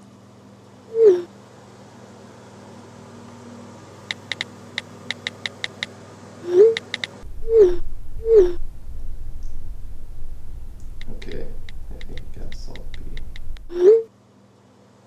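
A phone gives short rising-and-falling message alert tones.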